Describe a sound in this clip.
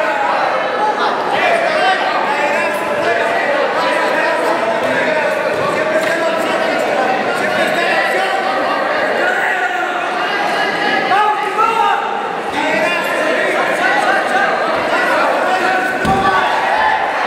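A crowd shouts and cheers in a large echoing arena.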